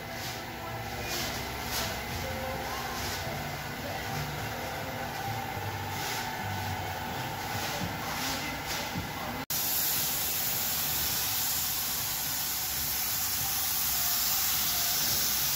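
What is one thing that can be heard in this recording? A spray gun hisses steadily at close range.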